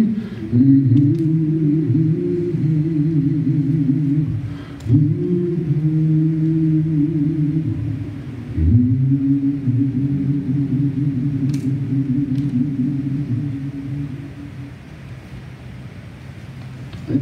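A piano plays slow, sustained chords.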